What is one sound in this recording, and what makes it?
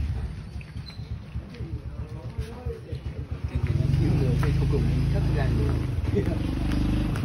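Young men talk to each other nearby.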